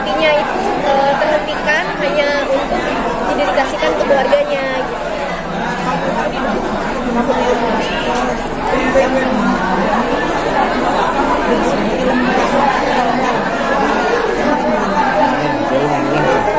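A crowd murmurs in the background of a busy, echoing hall.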